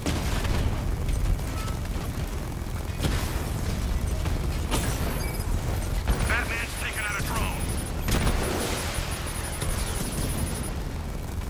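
A cannon fires in rapid bursts.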